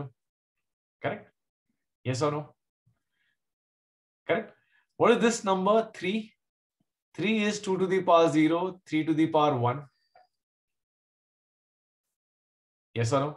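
A man speaks calmly in short phrases through a microphone, as if explaining.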